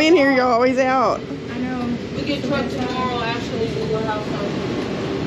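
A woman speaks cheerfully close by.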